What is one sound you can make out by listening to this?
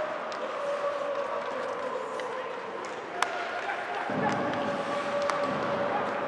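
Skate blades scrape across the ice.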